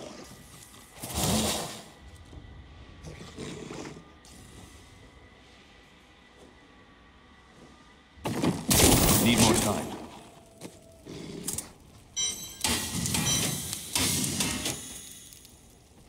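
Fantasy game sound effects burst out in short, loud swells.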